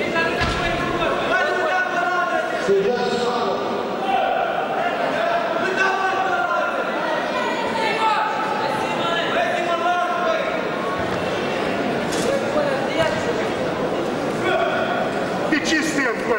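A crowd of spectators shouts encouragement in a large echoing sports hall.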